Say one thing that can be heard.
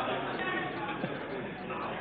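A crowd of men laughs.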